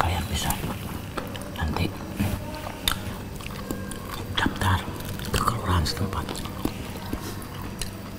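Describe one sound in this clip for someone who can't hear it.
Crunchy snacks crackle as people chew.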